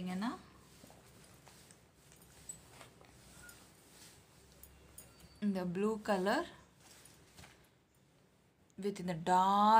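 Cloth rustles softly as hands move it about.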